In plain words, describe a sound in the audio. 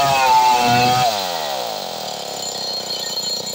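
A chainsaw engine winds down and slows to a stop.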